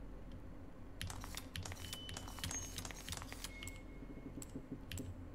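A metal disc clicks and grinds as it turns.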